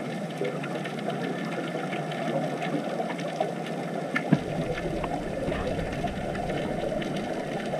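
A diver's breathing bubbles gurgle faintly underwater.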